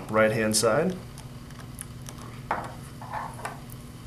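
A screwdriver clicks as it tightens a terminal screw.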